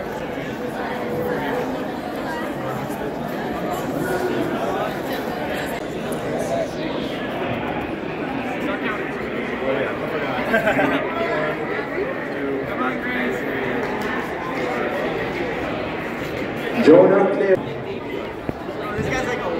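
A crowd of young people chatters all around indoors.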